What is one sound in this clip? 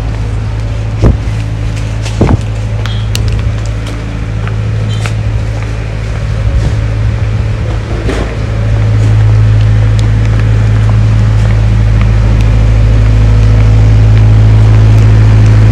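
High heels click on paving stones as a woman walks.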